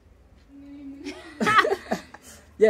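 A young woman laughs loudly, close by.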